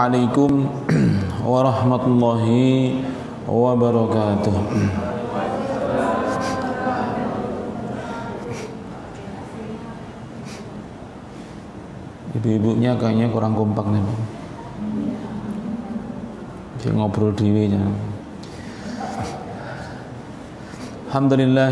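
A middle-aged man speaks slowly and solemnly into a microphone, heard through a loudspeaker in an echoing room.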